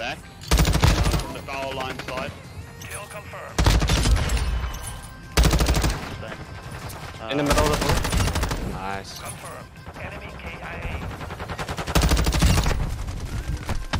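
Rapid bursts of automatic rifle fire crack loudly, close by.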